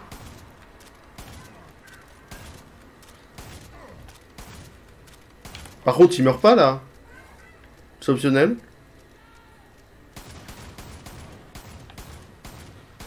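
A gun fires in rapid repeated shots.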